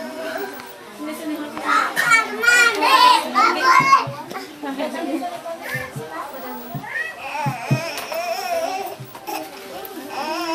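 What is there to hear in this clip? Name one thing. Several young women chatter and laugh loudly close by.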